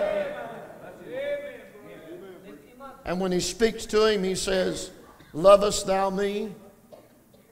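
A middle-aged man speaks with animation into a microphone in a large hall.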